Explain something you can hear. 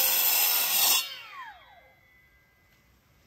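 A cut-off saw's blade spins down with a falling whine.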